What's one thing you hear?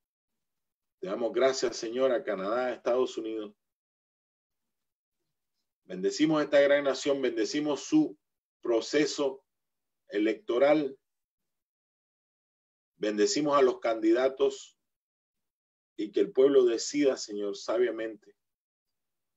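A middle-aged man speaks calmly in bursts over an online call.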